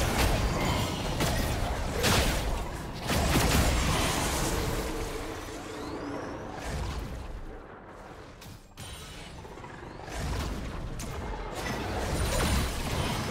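Magic blasts whoosh and boom.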